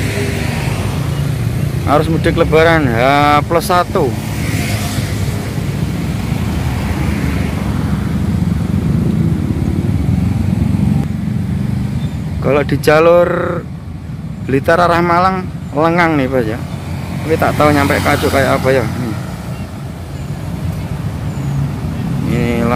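A vehicle engine hums steadily nearby.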